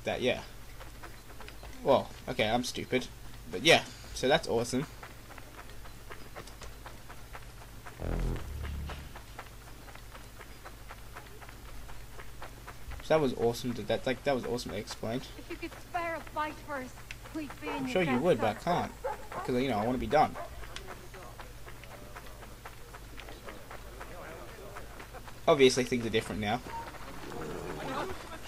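Quick footsteps run over a dirt path.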